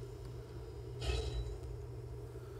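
A welding tool hisses and crackles in a short burst.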